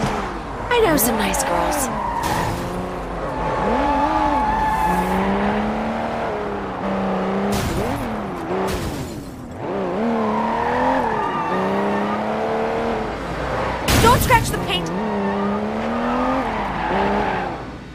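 Car tyres screech on wet road.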